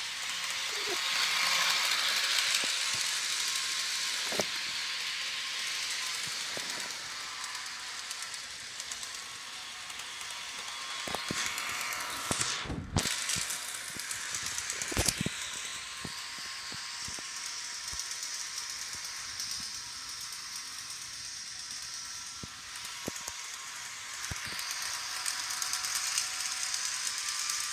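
A toy train whirs and clatters steadily along its track.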